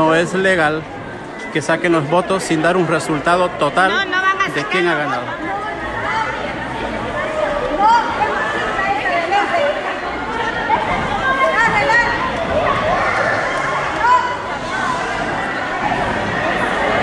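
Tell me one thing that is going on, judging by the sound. Many people talk and shout over each other nearby.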